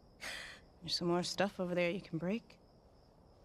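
A young woman speaks softly and calmly nearby.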